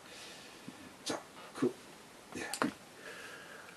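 Small objects click and knock as a man handles them.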